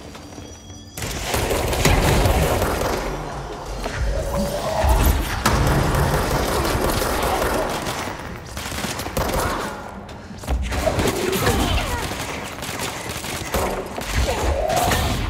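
Explosions boom and debris crashes loudly.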